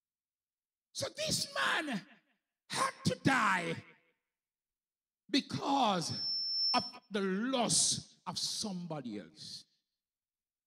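A man preaches with animation through a microphone and loudspeakers.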